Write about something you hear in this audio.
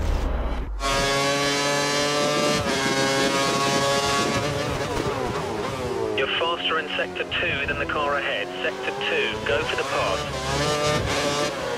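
A Formula One V8 engine screams at high revs, shifting up and down through the gears.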